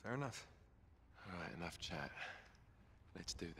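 A man speaks briskly and close by.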